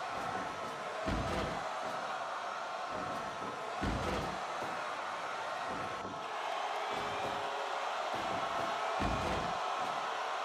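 Heavy bodies thud onto a wrestling mat.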